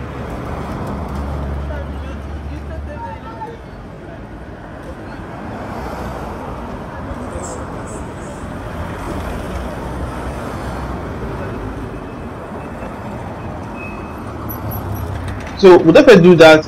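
Cars and minibuses drive past on a nearby road.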